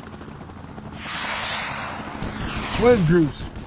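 A helicopter whirs overhead.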